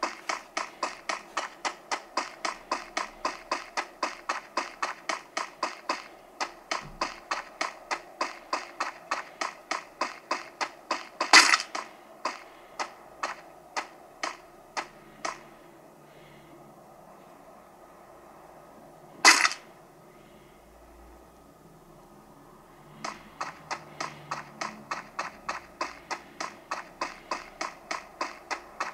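Footsteps of a running game character patter fast and evenly from a phone game.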